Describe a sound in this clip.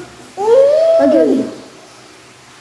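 A young boy hums with pleasure, his voice sliding up and down in a drawn-out tone.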